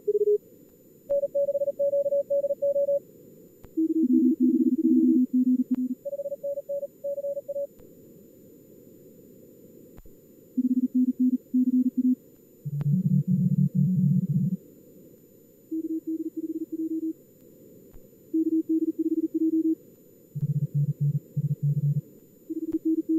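Soft radio static hisses steadily.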